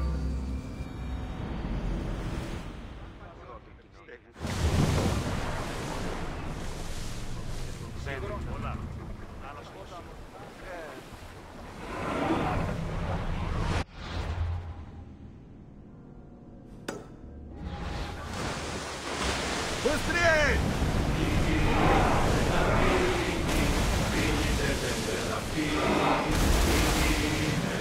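Waves wash and splash against a wooden ship at sea.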